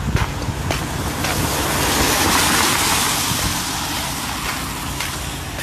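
A car passes with its tyres hissing on a wet road.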